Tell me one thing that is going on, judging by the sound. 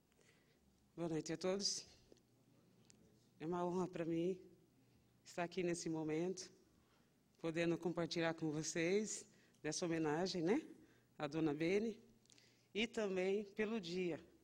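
A woman speaks calmly into a microphone, heard over a loudspeaker in a large room.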